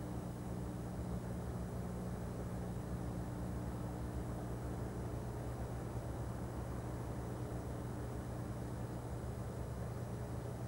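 A freight train rumbles past with a steady clatter of wheels on the rails.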